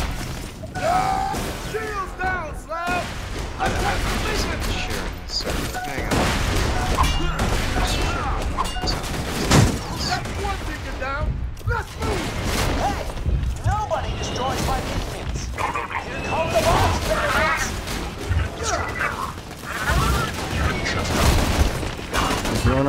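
Rapid gunfire crackles and booms.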